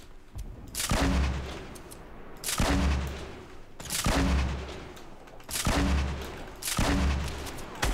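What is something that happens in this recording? A shotgun fires loud single blasts, each echoing away.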